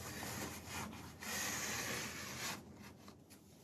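A metal strip scrapes softly across carpet.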